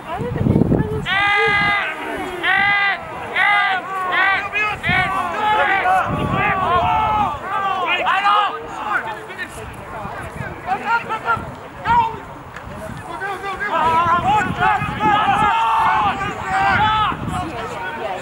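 Spectators cheer and shout from the sideline.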